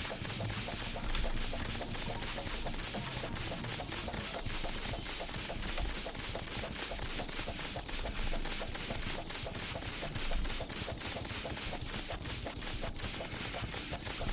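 Rapid laser shots zap over and over in a fast, steady rhythm.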